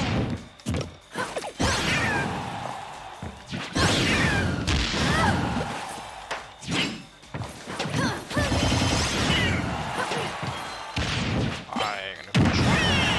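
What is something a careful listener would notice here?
Video game fighting sounds crash and whoosh in quick bursts.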